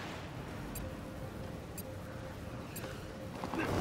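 A short electronic beep sounds once each second as a countdown.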